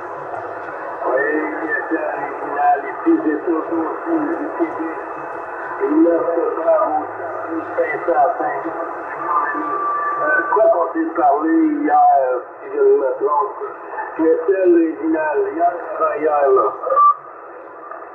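A man's voice talks through a crackling radio loudspeaker.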